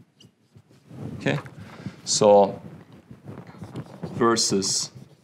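A man speaks calmly, like a lecturer.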